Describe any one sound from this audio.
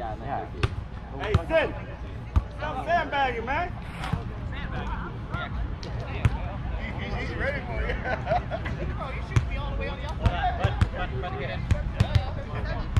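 Young people chatter and call out in the distance outdoors.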